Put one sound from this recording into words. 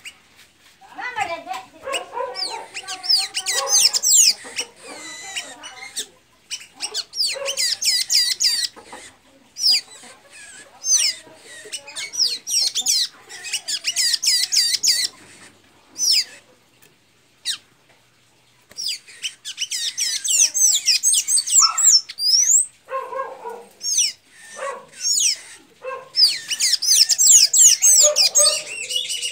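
A caged bird sings loud, rapid warbling phrases close by, in bursts with short pauses.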